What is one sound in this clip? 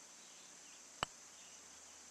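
A putter taps a golf ball softly.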